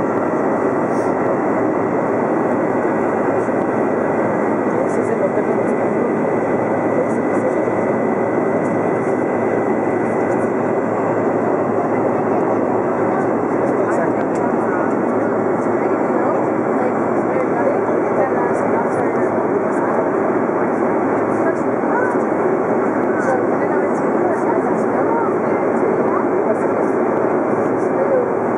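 Engine and rushing air noise roars steadily inside a passenger plane's cabin in flight.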